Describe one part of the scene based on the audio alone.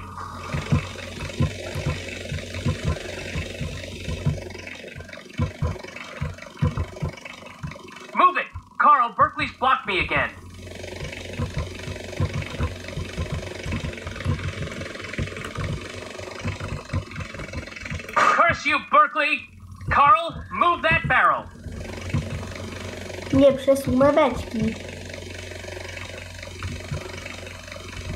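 A helicopter's rotor whirs and thumps steadily.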